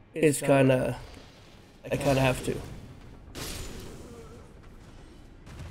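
A sword swings and strikes with heavy impacts.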